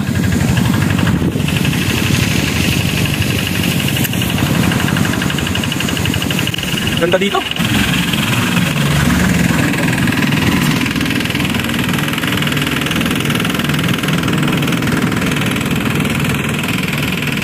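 A diesel engine chugs steadily nearby.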